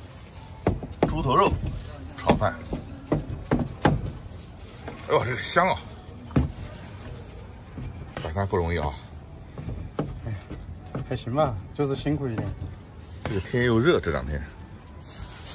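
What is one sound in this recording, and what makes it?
A middle-aged man speaks casually close by.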